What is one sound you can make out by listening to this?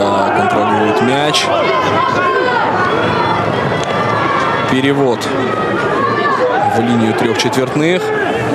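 A crowd murmurs steadily outdoors.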